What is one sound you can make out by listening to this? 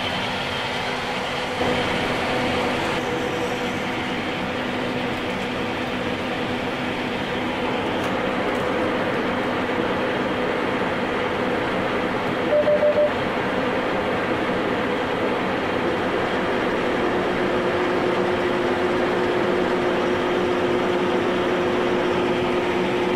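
A combine harvester engine drones loudly and steadily from the cab.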